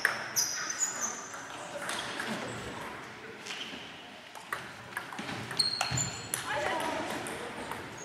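A table tennis ball clicks back and forth on paddles and the table in an echoing hall.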